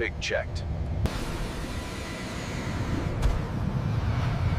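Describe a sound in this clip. A jet engine roars loudly as an airliner takes off.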